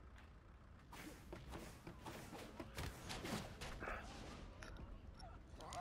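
Sword slashes whoosh through the air in a fight.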